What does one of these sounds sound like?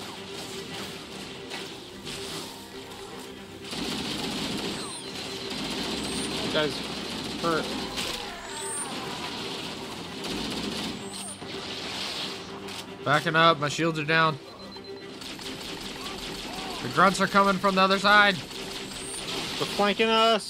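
Energy weapons fire in rapid zapping bursts.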